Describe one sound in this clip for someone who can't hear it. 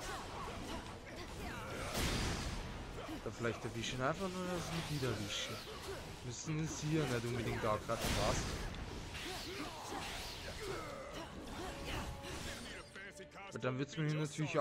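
Energy blasts whoosh and crackle.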